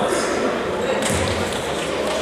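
A ball is kicked with a thump.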